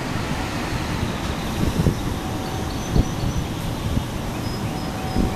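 A diesel train engine rumbles as a locomotive approaches.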